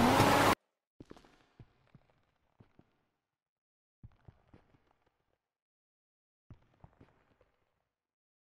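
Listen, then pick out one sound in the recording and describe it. Footsteps echo on a hard floor in a large enclosed space.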